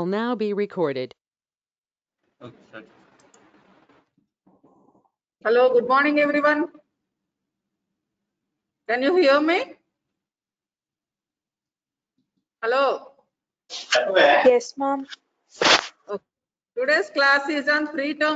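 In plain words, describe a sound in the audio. A woman speaks calmly in bursts through an online call.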